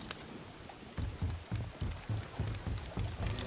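Heavy footsteps thud quickly on wooden boards.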